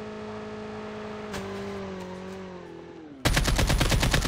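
A motorbike engine hums steadily, then drops in pitch.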